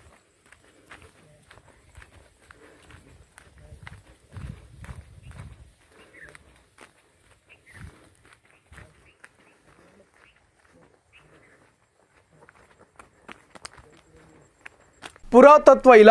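Footsteps crunch faintly on a dirt path.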